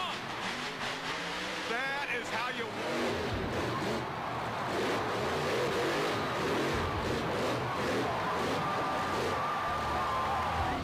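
A monster truck engine roars and revs.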